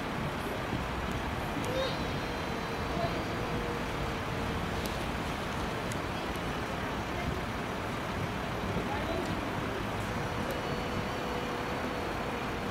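Traffic hums steadily outdoors.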